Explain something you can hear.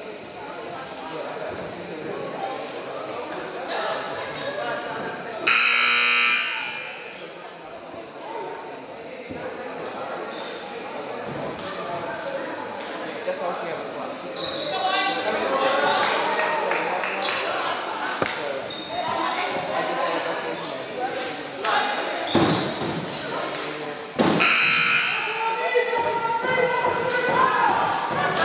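A crowd of spectators chatters and murmurs in a large echoing gym.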